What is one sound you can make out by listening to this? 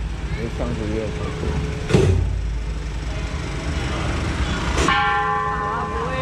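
A crowd of people chatter nearby on a busy street.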